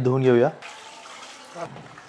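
Water pours and splashes over fish.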